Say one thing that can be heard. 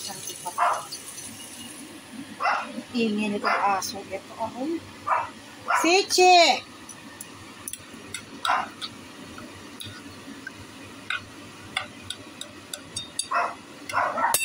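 Chopsticks clink against a metal pan.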